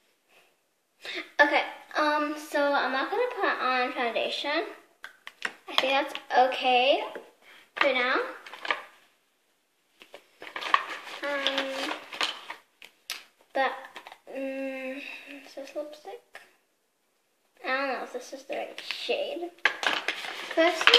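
A young girl talks calmly, close to the microphone.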